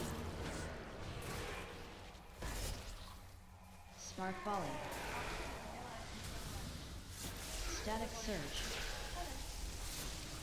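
Fantasy combat sound effects whoosh and crackle as spells hit.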